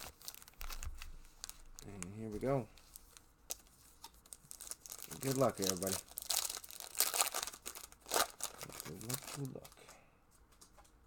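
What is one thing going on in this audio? Foil card wrappers crinkle and tear as they are opened.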